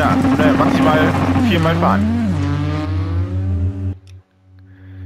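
A rally car engine roars past and fades away.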